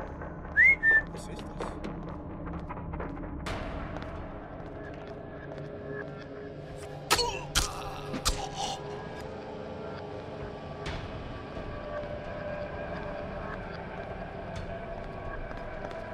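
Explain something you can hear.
Footsteps tap across a hard tiled floor.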